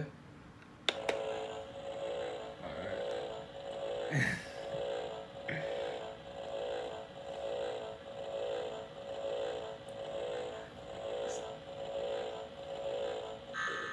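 An electronic device gives off a steady pulsing hum.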